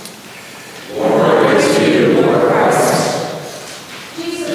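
A congregation responds together in unison.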